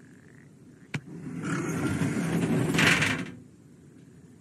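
A metal gate rattles as a man climbs over it.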